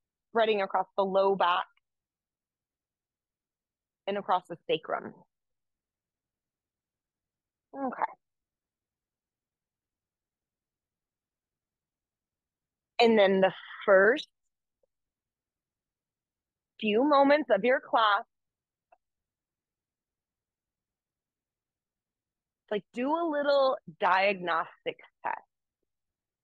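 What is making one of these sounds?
A young woman speaks calmly and clearly into a nearby microphone, in short bursts with pauses.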